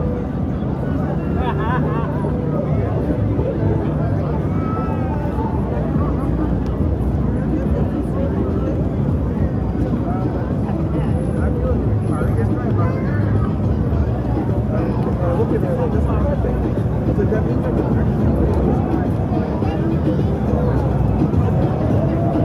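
A crowd of adults and children chatter all around outdoors.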